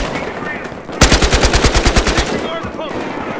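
An automatic rifle fires a rapid burst.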